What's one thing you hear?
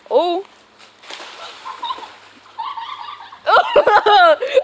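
Water splashes as a child slides along a wet plastic slide.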